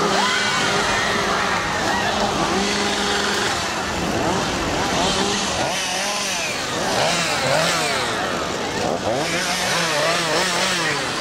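Chainsaw engines rev loudly, rising and falling.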